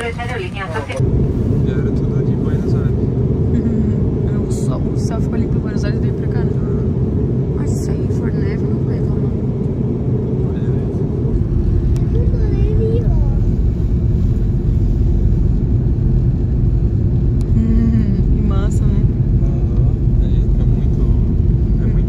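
A jet engine roars steadily inside the cabin.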